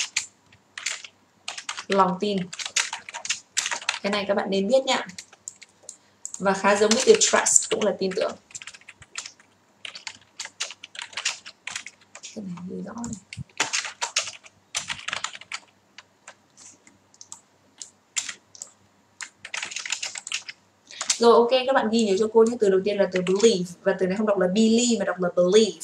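A young woman speaks calmly and clearly into a close microphone, explaining with pauses.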